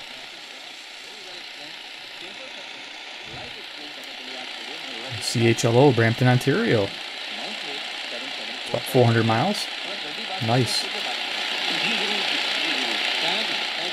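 A radio hisses with static.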